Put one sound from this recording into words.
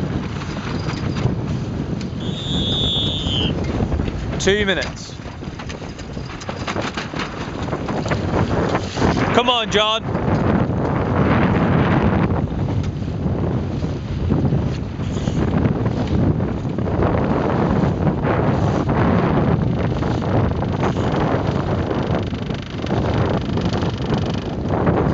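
Strong wind buffets the microphone outdoors on open water.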